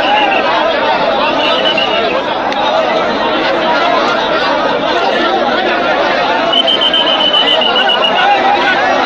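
Men talk and call out nearby with animation.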